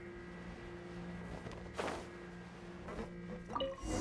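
Footsteps tap on stone stairs.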